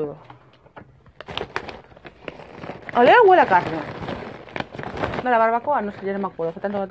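A crisp bag rustles and crinkles.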